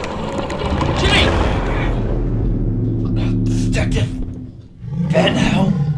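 A young man hisses and snarls close by.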